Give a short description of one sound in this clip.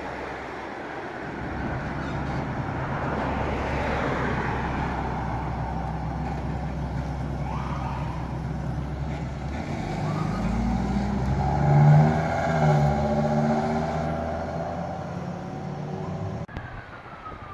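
An ambulance engine idles and rumbles as the vehicle pulls away.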